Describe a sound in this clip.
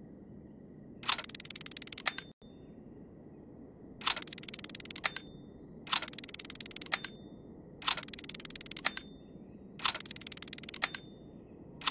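A dial ratchets with rapid clicks as it turns.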